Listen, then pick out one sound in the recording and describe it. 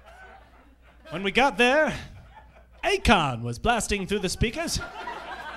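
A young man speaks animatedly into a microphone.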